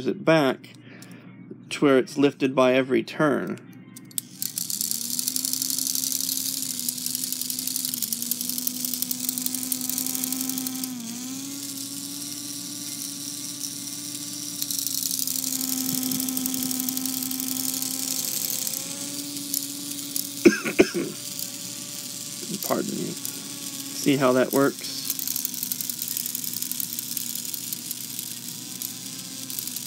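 Small metal gears of a clock movement click as fingers turn them.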